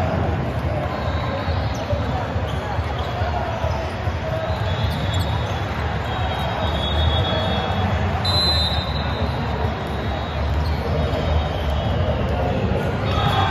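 Sneakers squeak on a sports court floor.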